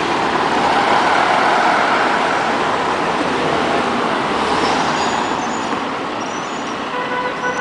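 Traffic rumbles and hisses steadily along a busy street.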